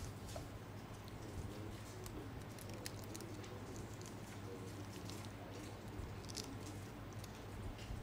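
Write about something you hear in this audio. Paper rustles close to a microphone.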